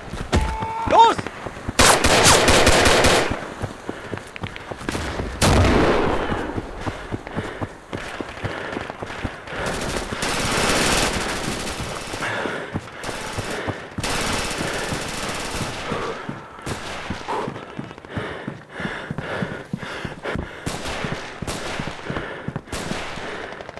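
Footsteps crunch and tap steadily on hard ground and wooden floors.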